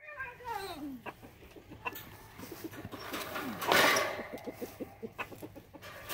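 A wire cage rattles.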